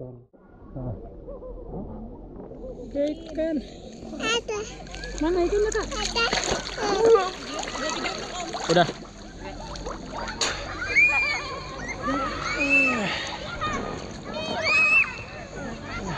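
Water laps and splashes close by.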